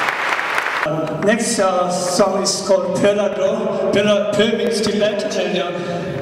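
A large choir sings with an orchestra.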